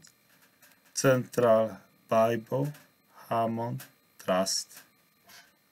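A middle-aged man speaks calmly and close to a microphone, in short phrases.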